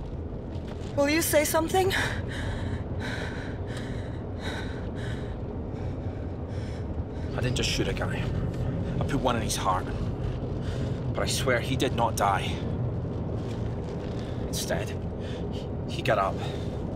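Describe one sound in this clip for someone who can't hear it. A young woman speaks in a low, tense voice close by.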